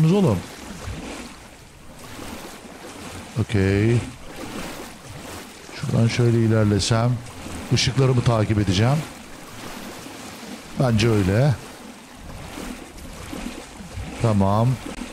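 A man talks in short bursts close to a microphone.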